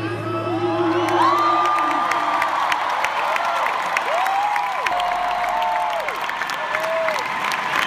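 A large crowd claps.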